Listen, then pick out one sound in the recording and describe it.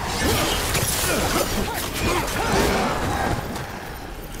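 Magic blasts crackle and burst.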